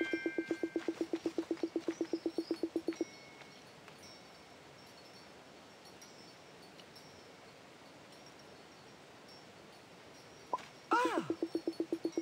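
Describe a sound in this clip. A quick, even run of soft pitched blips chatters like a game character talking.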